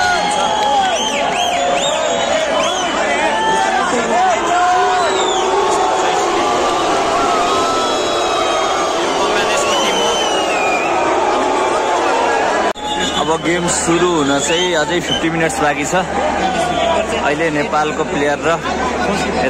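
A large crowd of spectators chatters and cheers in an open stadium.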